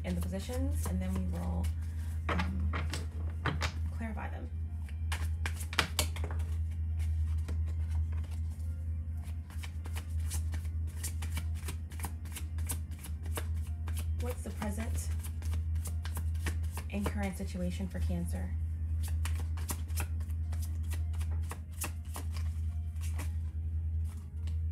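Playing cards are shuffled by hand, with quick soft flicking and snapping.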